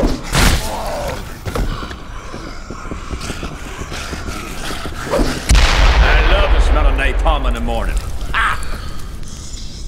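Zombies groan and snarl in a narrow echoing corridor.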